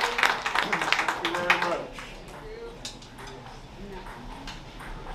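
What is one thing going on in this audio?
A small jazz band plays live, loud at first and then much softer.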